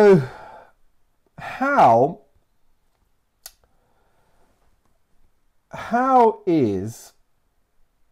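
A middle-aged man speaks slowly and clearly into a close microphone, in short phrases with pauses.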